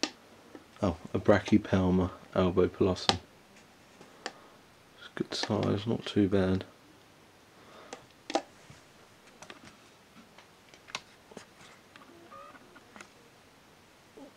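A plastic container rattles and knocks as it is handled.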